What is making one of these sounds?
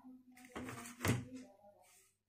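A small switch clicks.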